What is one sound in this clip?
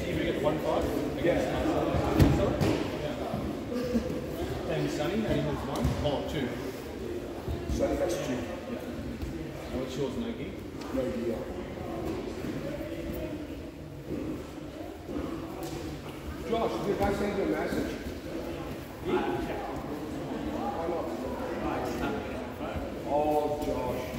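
Men talk and chatter around a large echoing hall.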